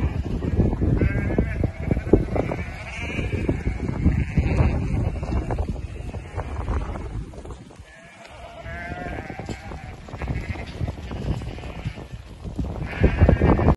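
Sheep bleat now and then.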